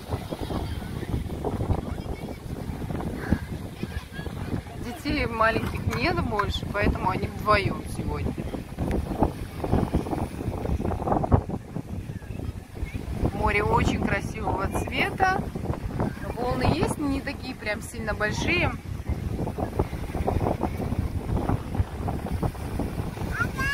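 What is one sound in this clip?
Small waves lap gently against the shore.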